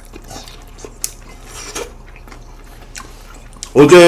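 Chopsticks clink against a plate.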